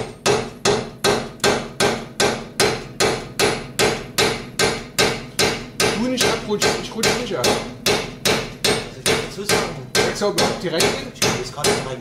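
A sledgehammer strikes metal in steady, rapid, ringing blows.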